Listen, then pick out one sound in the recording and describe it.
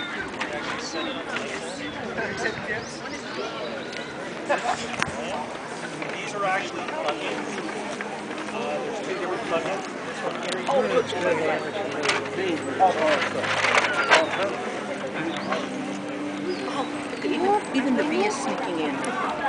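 A crowd of men and women chatter outdoors all around.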